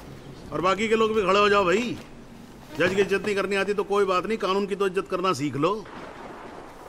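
A middle-aged man speaks loudly and with animation.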